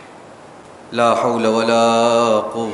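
A man chants loudly in a melodic voice through a microphone.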